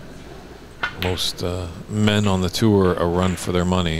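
Snooker balls knock against each other.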